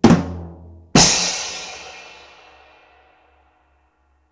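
Drums and a cymbal crash twice, then ring out and slowly fade.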